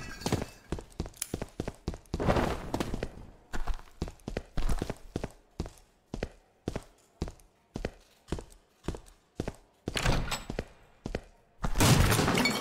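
Footsteps tread quickly and steadily on a hard floor.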